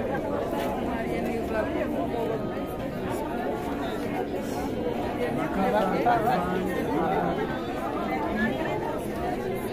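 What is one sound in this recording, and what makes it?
A crowd of men and women chatters loudly all around, close by.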